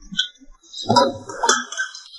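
Water pours into a glass.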